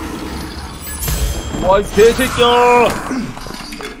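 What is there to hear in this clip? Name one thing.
A magic spell bursts with a crackling whoosh.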